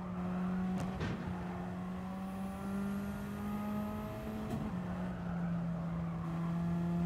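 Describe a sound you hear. A racing car engine drones steadily at high revs.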